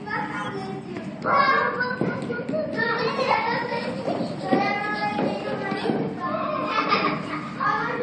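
Bare feet thump and slide on a wooden floor.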